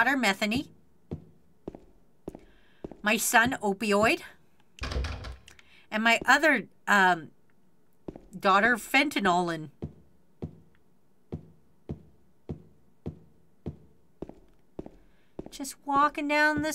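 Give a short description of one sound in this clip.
Footsteps tread slowly and evenly on a hard floor.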